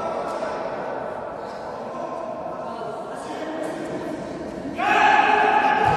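A ball thuds as it is kicked in an echoing hall.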